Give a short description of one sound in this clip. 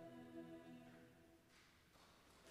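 A young choir sings a held chord in an echoing hall, then falls silent.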